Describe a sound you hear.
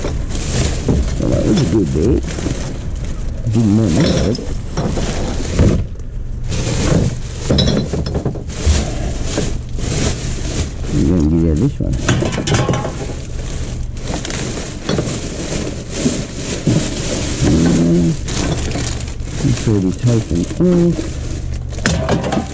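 Glass bottles clink together.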